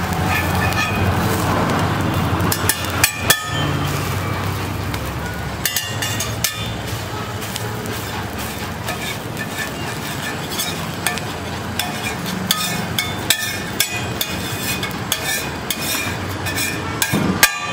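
A metal spatula clinks and scrapes against a hot griddle.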